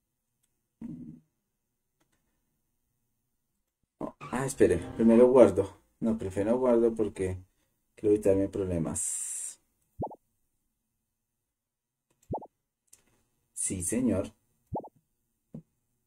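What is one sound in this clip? Short electronic blips sound as menu choices are made.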